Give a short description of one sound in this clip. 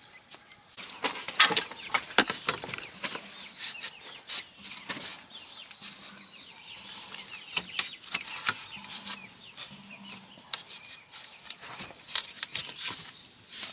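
Bamboo sticks clack and knock together.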